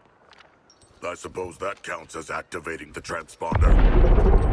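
A deep-voiced man speaks in a low growl.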